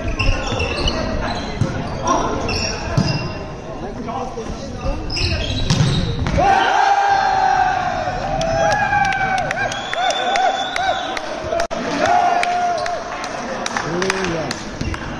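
Players' hands hit a volleyball with sharp slaps in a large echoing hall.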